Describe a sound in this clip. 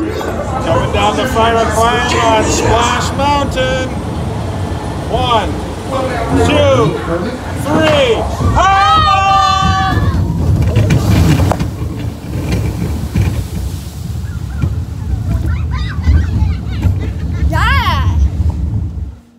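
Young boys scream and shout excitedly nearby.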